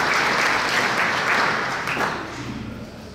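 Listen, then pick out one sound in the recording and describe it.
A crowd applauds, then the clapping quickly dies away.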